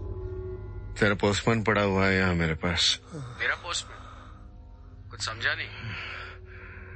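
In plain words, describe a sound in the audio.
A man speaks in a low, gruff voice close by.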